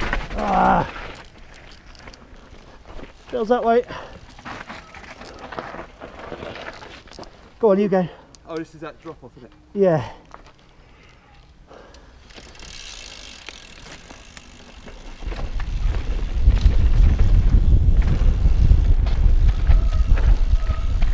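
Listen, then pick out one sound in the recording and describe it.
Bicycle tyres roll and crunch over a rocky dirt trail.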